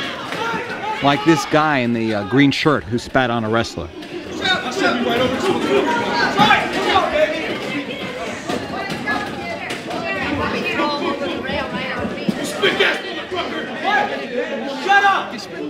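A man yells angrily up close.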